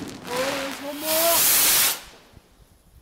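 A firework rocket whooshes upward.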